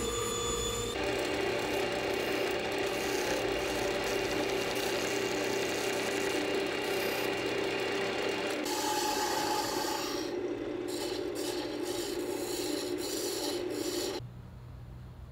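A lathe hums as it spins.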